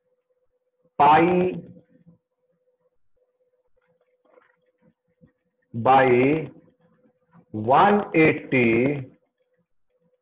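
A man speaks calmly through a microphone on an online call, in short phrases.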